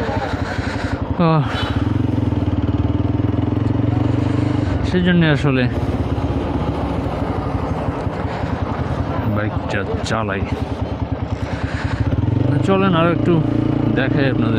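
A motorcycle engine revs up and down in pitch.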